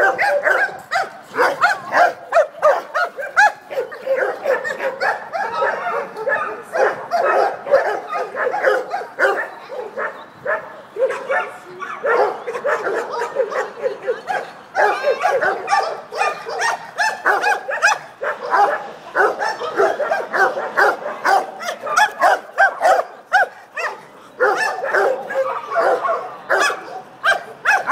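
Several dogs bark loudly and excitedly nearby.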